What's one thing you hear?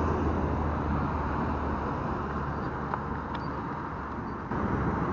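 Traffic roars past on a nearby road.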